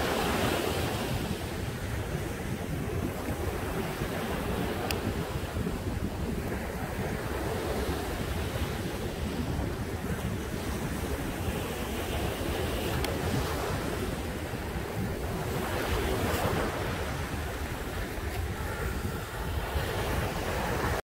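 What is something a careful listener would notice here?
Small waves break and wash gently onto a sandy shore.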